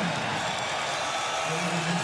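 A large stadium crowd cheers loudly.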